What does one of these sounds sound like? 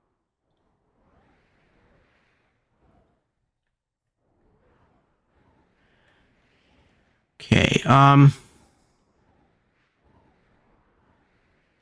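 A man talks quietly through a headset microphone.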